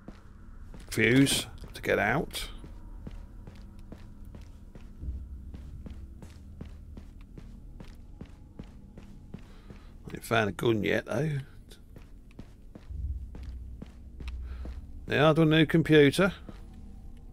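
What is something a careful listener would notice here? A middle-aged man speaks with animation into a close microphone, in short bursts.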